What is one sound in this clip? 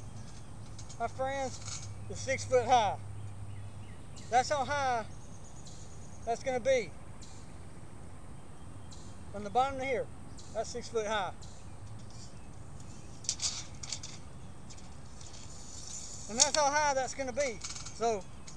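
A man talks loudly outdoors in short bursts.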